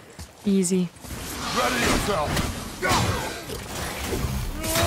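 Blows and clashes of a fight thud loudly.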